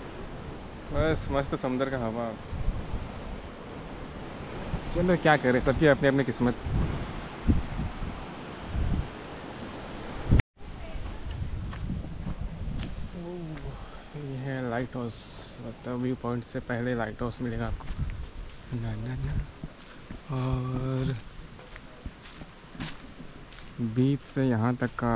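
A man talks calmly and close up.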